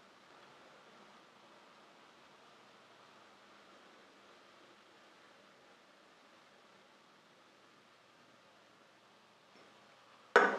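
Fizzy soda pours and bubbles into a glass.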